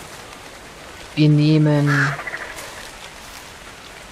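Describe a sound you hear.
Leafy plants rustle as they are pulled by hand.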